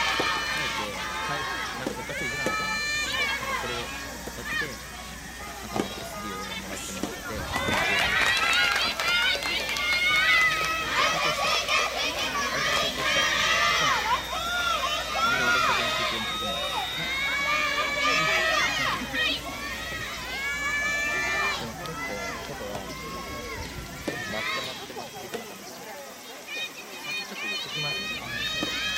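Tennis balls are hit with rackets at a distance, with a short hollow pop.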